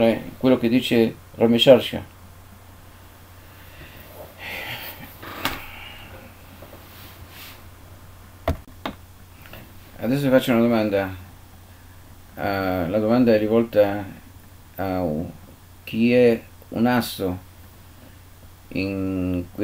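An elderly man speaks calmly and close to a microphone, with pauses.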